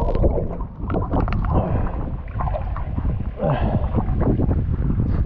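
Water splashes and laps close by.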